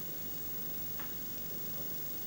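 Snooker balls knock together with a clack.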